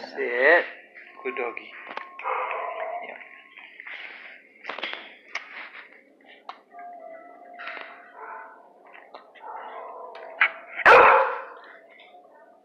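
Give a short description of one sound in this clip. A dog whines and yelps up close.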